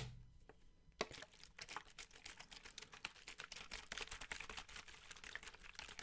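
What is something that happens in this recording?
A plastic water bottle crinkles and crackles close to a microphone.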